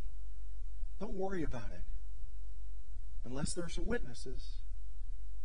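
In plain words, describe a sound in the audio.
A middle-aged man speaks calmly into a microphone, with pauses.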